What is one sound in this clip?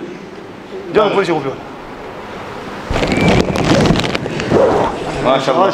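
A man speaks into a microphone, heard through loudspeakers in an echoing room.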